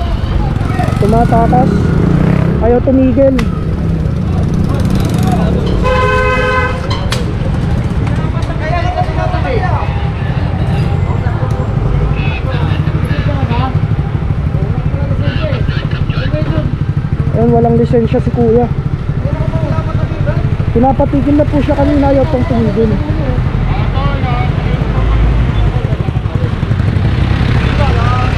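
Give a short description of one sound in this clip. A motorcycle engine idles and rumbles close by.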